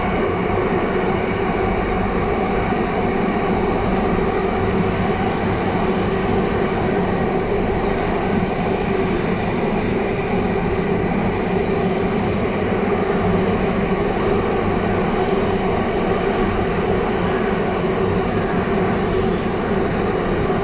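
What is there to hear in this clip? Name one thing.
A subway train rumbles and roars steadily along the tracks.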